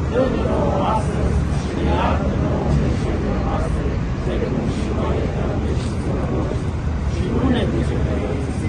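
A man speaks loudly to a crowd outdoors.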